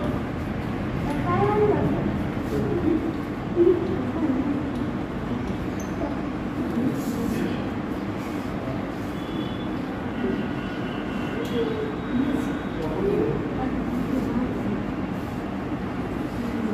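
Chalk scratches and taps on a blackboard.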